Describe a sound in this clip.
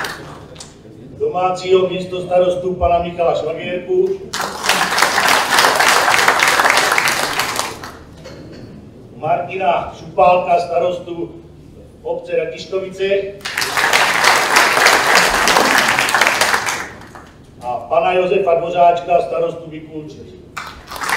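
A man speaks to a seated crowd.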